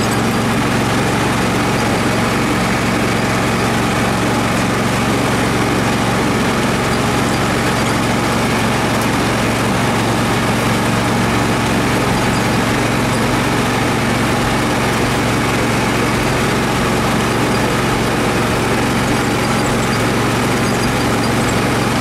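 A vehicle engine runs steadily as the vehicle drives along.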